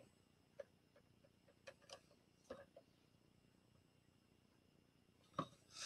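A paintbrush taps faintly against a jar.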